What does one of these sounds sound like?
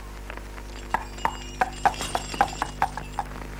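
A horse's hooves clop on the ground.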